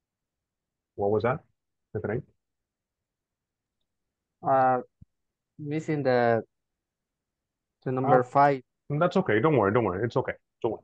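A man speaks calmly in short phrases through an online call microphone.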